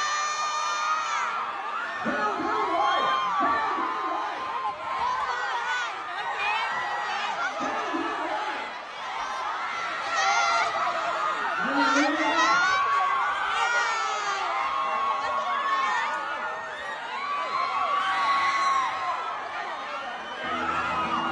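A crowd of young women screams and cheers loudly in a large hall.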